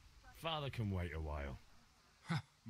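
A young man speaks calmly, close by.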